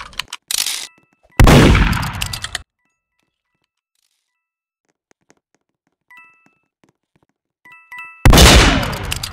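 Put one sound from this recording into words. A short electronic chime rings out as coins are picked up.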